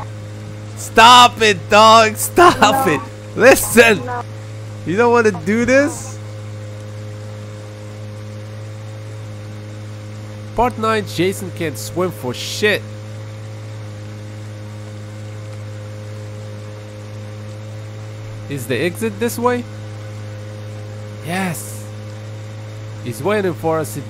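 A small boat motor hums steadily.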